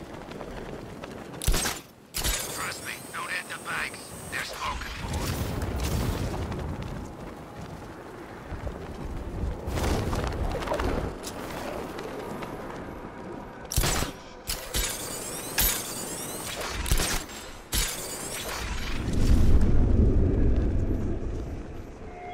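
Wind rushes past at high speed.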